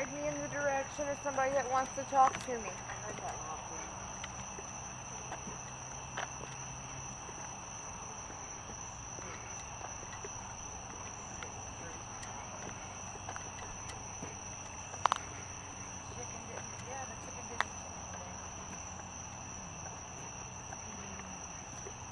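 Footsteps tread slowly on pavement outdoors.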